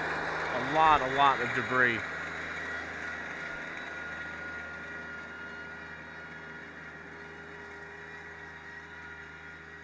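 A drag harrow scrapes over dirt and leaves.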